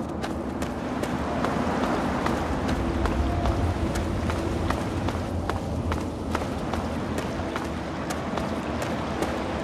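Footsteps tread steadily over stone and gravel.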